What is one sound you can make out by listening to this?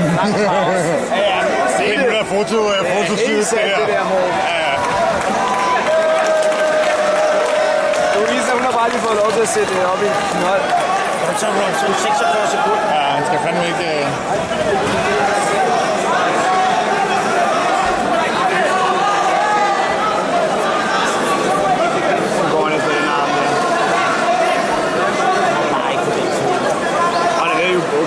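A crowd of spectators chatters and shouts in a large hall.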